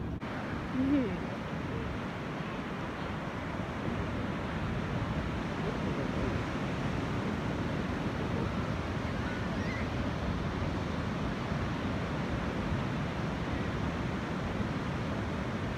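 Waves crash and roll steadily onto the shore.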